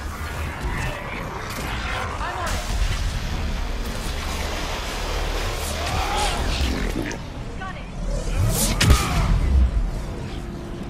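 Energy blasts burst with crackling explosions.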